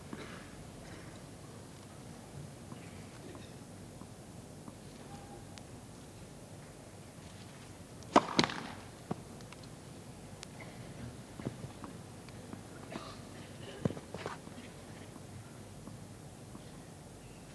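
A tennis ball bounces on grass.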